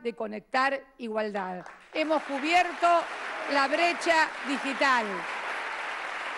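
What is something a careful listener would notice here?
A woman speaks firmly into a microphone.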